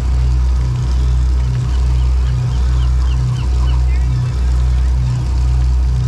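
A boat engine rumbles steadily with a low, pulsing throb.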